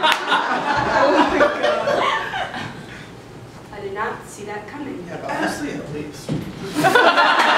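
A young woman speaks with animation.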